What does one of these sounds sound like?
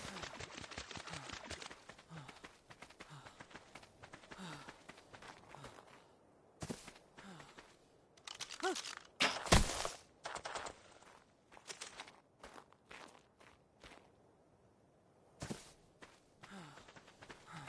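Footsteps crunch on sand and rock.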